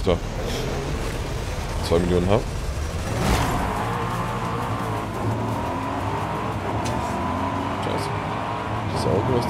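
A car engine roars and rises in pitch as it speeds up.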